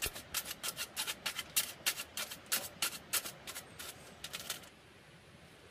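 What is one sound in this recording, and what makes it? A knife chops rapidly through bamboo sticks.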